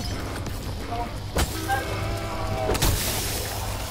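A zombie growls and snarls close by.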